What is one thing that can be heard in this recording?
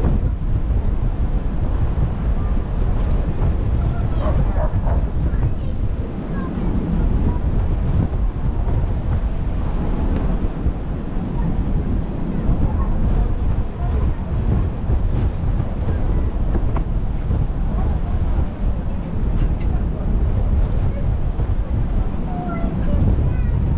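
Strong wind buffets loudly, outdoors.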